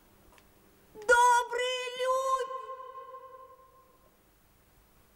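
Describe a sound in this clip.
A young woman sings a long, high note that slowly fades.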